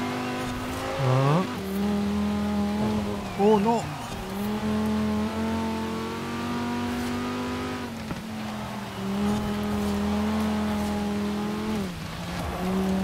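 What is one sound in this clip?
A car engine drops in pitch with each quick gear change.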